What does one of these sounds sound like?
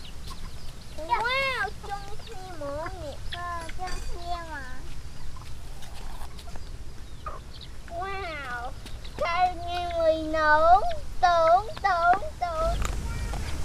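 A young girl talks in a high, lively voice nearby.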